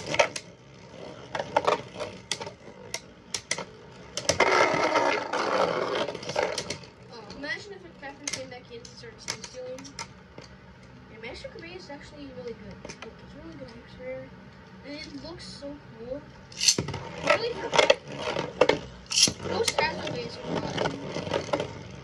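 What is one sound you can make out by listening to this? A spinning top whirs steadily on a plastic surface.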